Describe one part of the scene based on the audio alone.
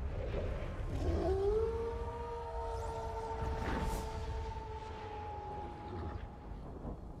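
A wolf howls long and loud, close by.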